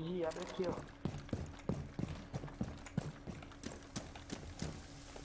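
Footsteps thud steadily in a video game.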